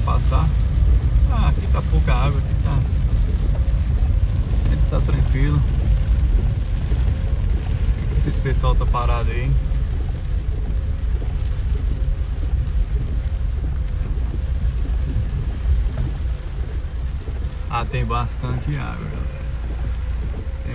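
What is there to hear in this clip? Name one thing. A car engine rumbles steadily from inside a moving car.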